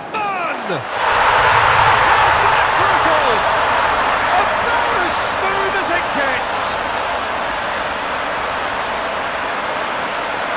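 A stadium crowd roars loudly in cheering.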